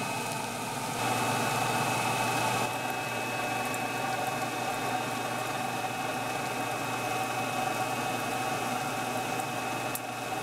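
Sawdust rattles as a vacuum hose sucks it up.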